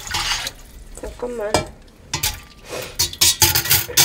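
A metal steamer basket clanks into a steel pot.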